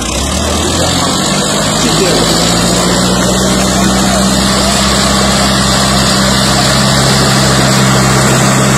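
A tractor engine revs up and strains as the tractor pulls.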